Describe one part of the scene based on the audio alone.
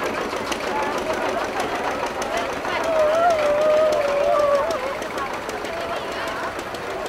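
A crowd of men and women chatter and call out.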